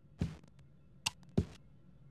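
A light switch clicks.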